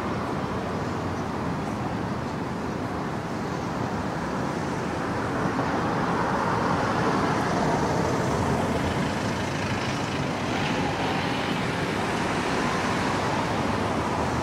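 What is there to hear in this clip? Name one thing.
Steady city traffic hums in the open air.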